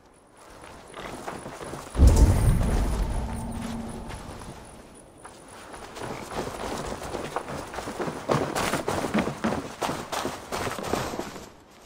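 Footsteps thud on soft ground and wooden floors.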